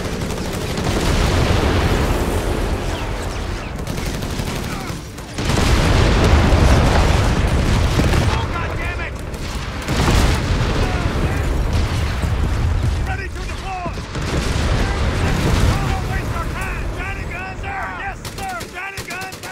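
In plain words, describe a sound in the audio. Gunfire rattles and explosions boom in a battle.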